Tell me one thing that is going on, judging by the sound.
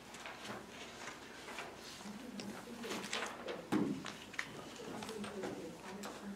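Paper rustles as a man handles a sheet.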